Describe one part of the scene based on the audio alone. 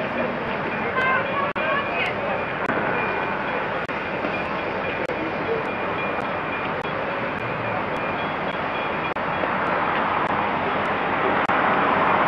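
A crowd of people murmurs nearby, outdoors.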